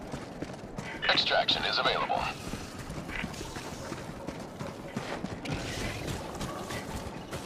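A young boy speaks excitedly, close to a microphone.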